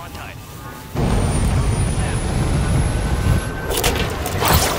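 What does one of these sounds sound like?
Jet engines of a large plane roar loudly.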